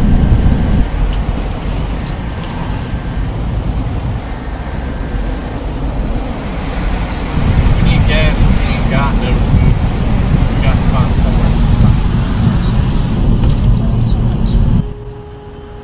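A car engine roars loudly at speed.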